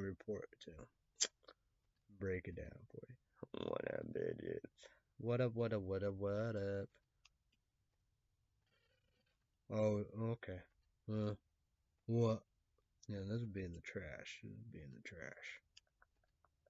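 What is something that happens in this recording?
A young man talks calmly and close to a microphone, with pauses.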